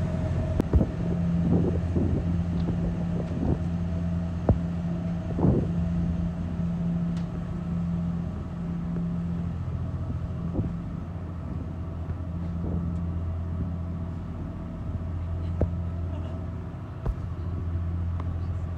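A boat's engine drones low.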